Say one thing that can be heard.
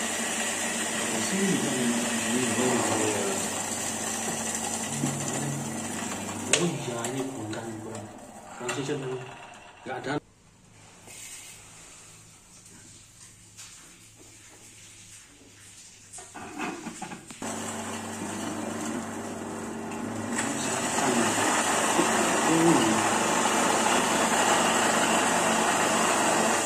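An electric coffee grinder motor hums steadily.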